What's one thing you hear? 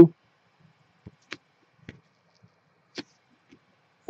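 Hands handle trading cards with soft taps and rustles.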